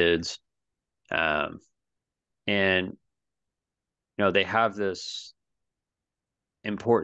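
A man speaks with animation over an online call, in short bursts.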